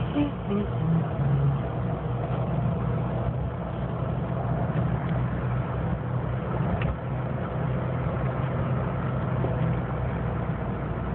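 Tyres roll along a paved road with a steady rumble.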